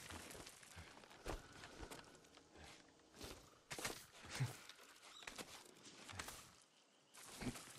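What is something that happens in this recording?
Hands scrape and grip on rock while climbing.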